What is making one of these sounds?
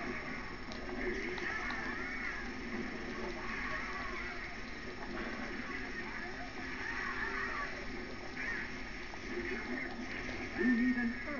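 Video game music and sound effects play from a television speaker.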